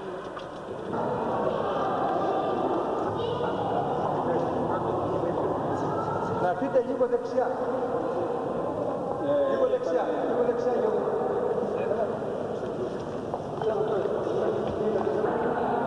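A crowd of men talks and murmurs nearby.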